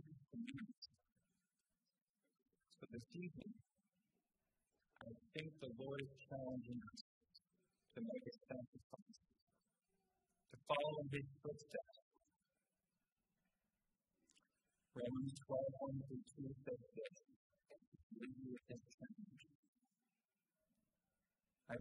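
A man speaks slowly through a microphone, with pauses between phrases.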